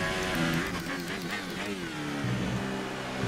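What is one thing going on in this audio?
A racing car engine blips sharply during quick downshifts.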